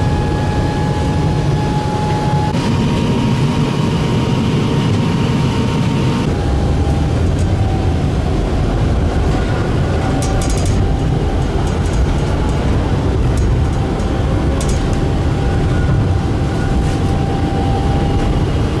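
A tram's electric motor whines with a steady hum.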